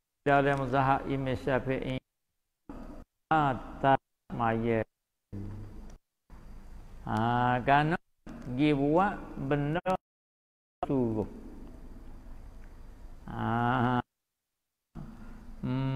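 An elderly man speaks calmly into a microphone, in a slow, chanting voice.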